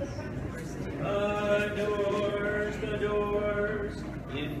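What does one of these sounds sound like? An elderly man chants a long, sustained line in an echoing hall.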